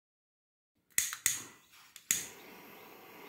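A gas torch lighter clicks several times.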